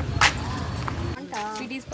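A plastic shopping bag rustles while being carried.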